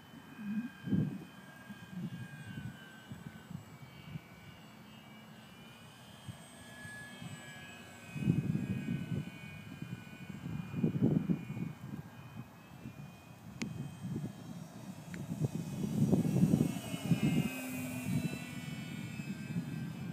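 A small model plane's motor whines high overhead, rising and falling.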